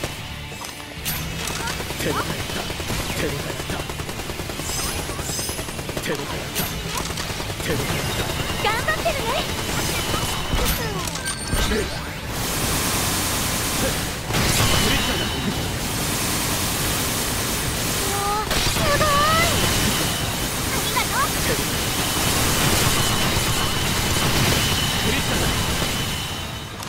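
Sword and spell hits land with sharp impacts.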